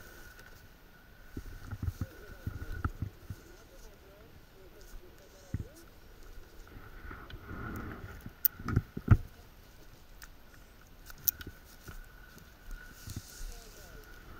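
Paraglider lines and harness straps rustle and knock as they are handled.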